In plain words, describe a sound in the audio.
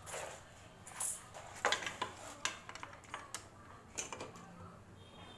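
Metal parts clank and rattle as a motorcycle chain cover is handled.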